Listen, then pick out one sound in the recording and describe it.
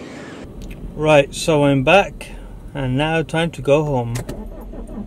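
A man speaks calmly close to a microphone in a car.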